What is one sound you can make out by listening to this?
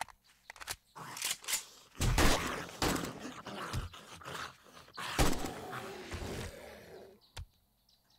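A rifle fires rapid bursts of loud shots.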